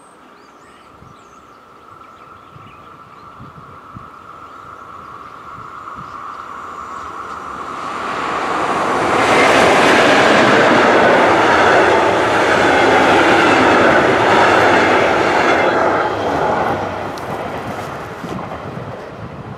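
A passenger train approaches, roars past close by and fades away.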